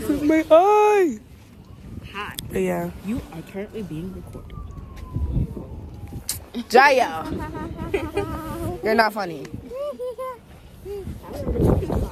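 A young woman talks and laughs close to a phone microphone.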